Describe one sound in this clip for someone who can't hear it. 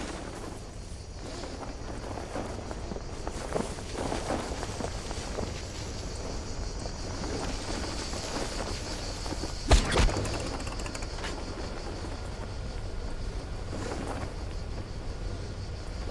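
Wind rushes steadily past a fluttering parachute canopy.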